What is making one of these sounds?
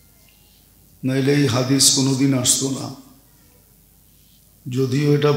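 An elderly man speaks steadily into a microphone, with pauses.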